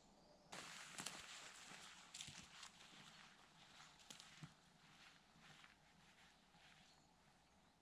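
Footsteps crunch and rustle on the forest floor, fading as a person walks away.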